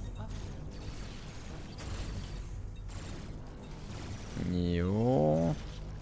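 A young man talks into a close microphone.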